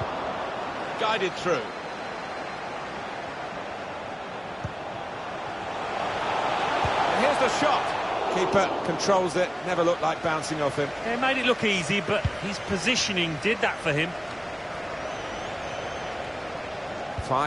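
A large stadium crowd roars steadily and swells for a while.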